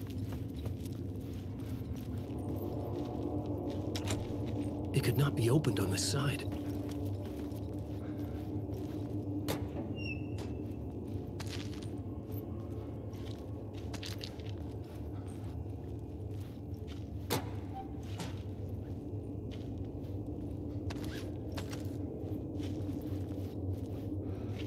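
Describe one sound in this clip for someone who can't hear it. Footsteps tread slowly on a hard tiled floor.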